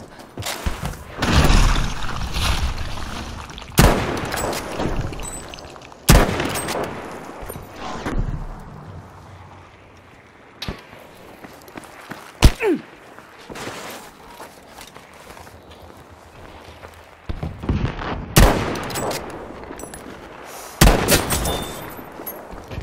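Gunfire and explosions rumble in the distance.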